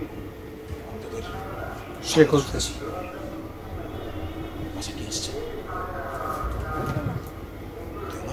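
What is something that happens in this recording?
A boy speaks calmly close by.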